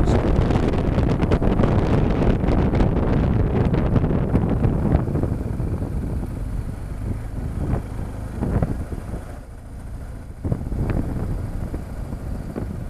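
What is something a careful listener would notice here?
A motorcycle engine hums steadily and slows down.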